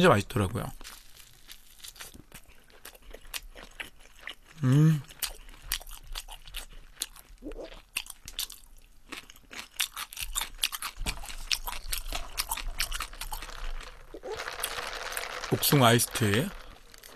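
A young man chews and crunches toasted bread loudly.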